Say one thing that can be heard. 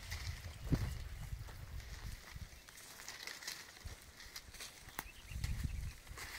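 Footsteps crunch and rustle through dry grass.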